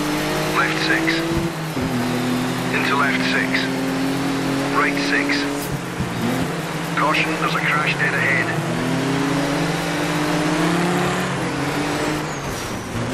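A rally car engine roars steadily, its pitch rising and dropping with gear changes.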